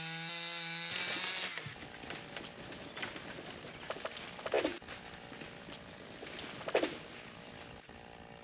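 A tree creaks and crashes down.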